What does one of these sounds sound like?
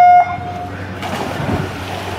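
A swimmer dives and splashes into the water.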